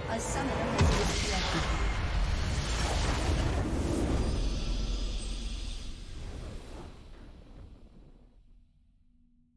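A triumphant game fanfare swells and then fades away.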